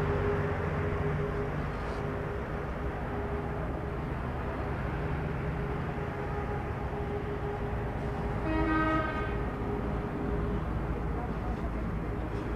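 A car engine idles nearby with a low rumble.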